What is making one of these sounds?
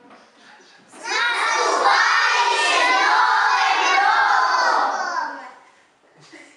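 A group of young children shout together loudly.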